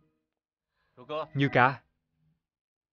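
A man speaks firmly.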